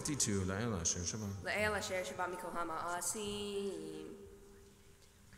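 A man chants in a sung voice through a microphone in an echoing hall.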